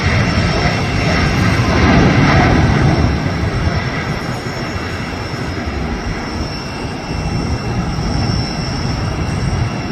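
A jet airliner roars loudly as it takes off in the distance.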